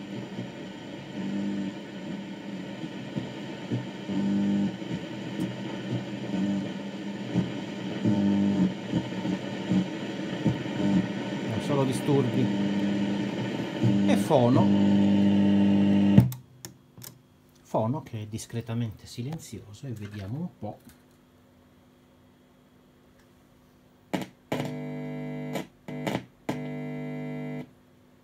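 An old radio hums and crackles from its loudspeaker as its tuning dial is turned.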